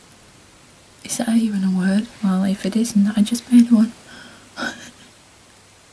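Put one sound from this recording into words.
A young woman talks calmly close by.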